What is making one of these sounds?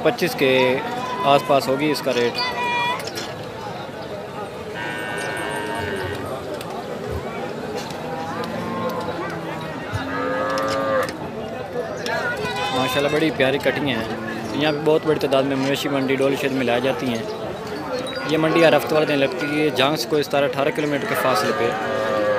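Men talk with animation in a busy crowd nearby.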